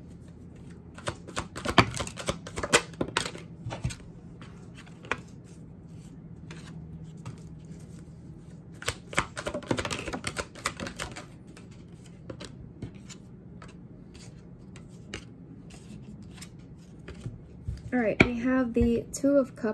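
Playing cards shuffle and flick with soft papery clicks.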